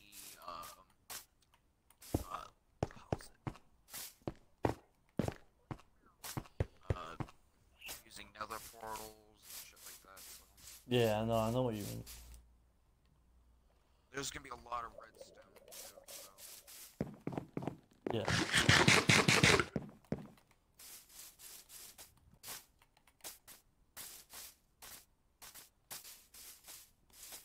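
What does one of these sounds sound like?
Footsteps thud softly on grass and stone.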